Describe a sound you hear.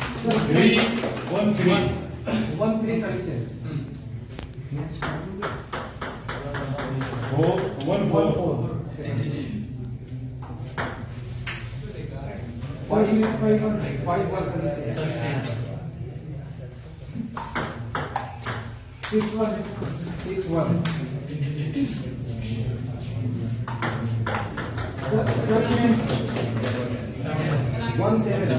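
Young people talk and murmur nearby in an echoing room.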